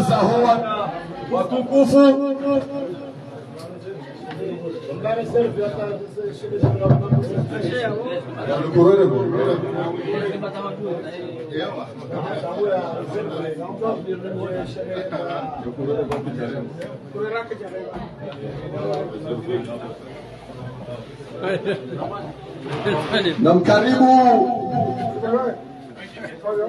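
A crowd of men talk and chatter close by.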